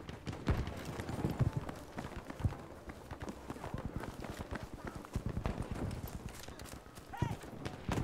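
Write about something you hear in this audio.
Footsteps crunch on dirt and gravel at a quick pace.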